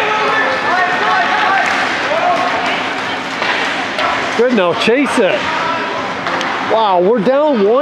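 A crowd of spectators chatters and cheers in a large echoing arena.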